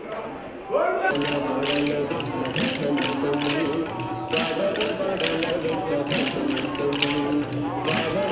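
Wooden sticks click together in a steady rhythm.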